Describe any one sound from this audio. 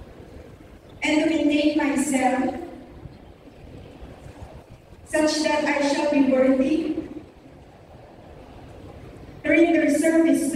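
A large crowd of young men and women sings together in unison.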